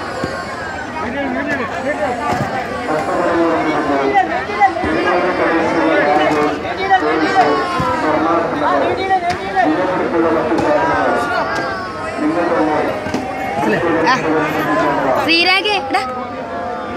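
A large crowd of men talks and shouts all around, close by.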